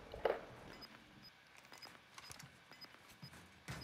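A gun is swapped with quick metallic clicks and rattles.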